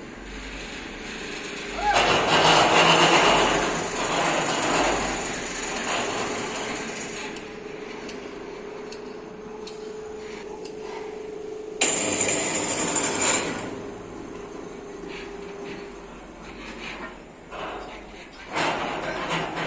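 Heavy concrete blocks scrape and knock as men shift them by hand.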